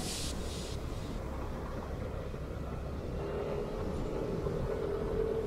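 Wind rushes over the microphone outdoors.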